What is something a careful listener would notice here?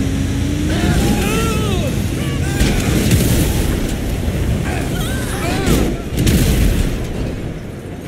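A heavy truck engine rumbles loudly nearby.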